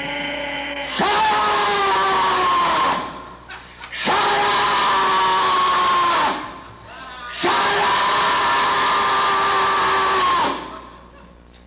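A horn blows long, loud, held notes, each ending with a slight drop in pitch.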